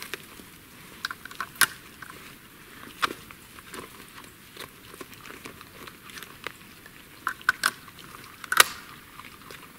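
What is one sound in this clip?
Metal clicks and clacks sharply as a man handles a shotgun.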